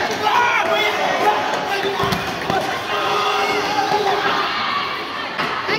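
A crowd of people talks and shouts in a large echoing hall.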